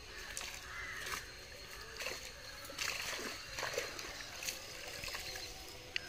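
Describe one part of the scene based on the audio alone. Water splashes as a cast net is hauled out of a pond.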